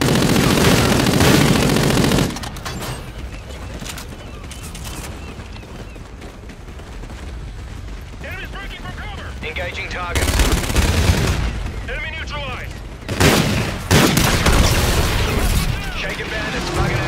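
Guns fire in loud bursts.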